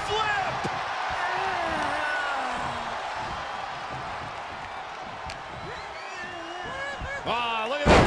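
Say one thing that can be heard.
A large crowd cheers and roars steadily in an arena.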